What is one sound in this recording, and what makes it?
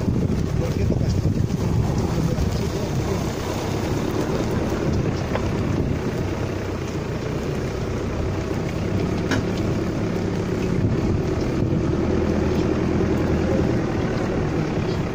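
A car engine rumbles as the car crawls slowly uphill.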